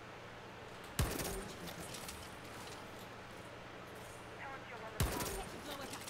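A breaching charge thuds onto a metal garage door.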